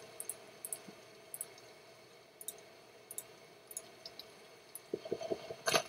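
Soft clicks tick as items are moved in a game menu.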